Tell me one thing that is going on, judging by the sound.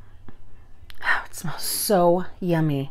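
A woman sniffs sharply up close.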